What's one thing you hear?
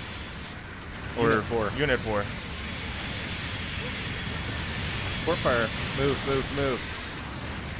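Energy weapons fire in short blasts.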